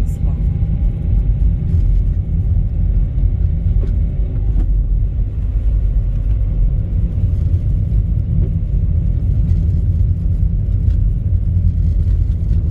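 A car engine hums with a low, steady road rumble from inside the car.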